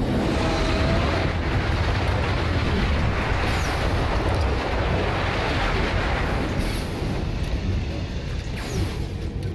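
Fires crackle and roar.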